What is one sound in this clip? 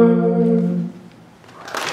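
A group of young men and women sing together through a microphone in a large hall.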